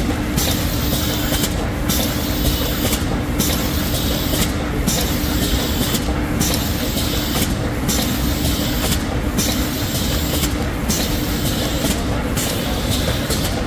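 A conveyor belt machine runs with a steady mechanical whir.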